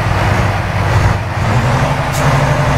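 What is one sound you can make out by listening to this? A truck engine briefly drops off and then picks up at a higher, steady pitch as the gear changes.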